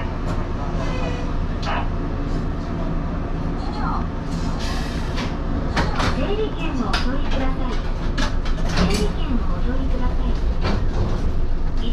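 A train carriage rattles and clicks as the train rolls along.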